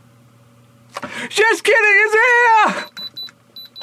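A young man shouts loudly.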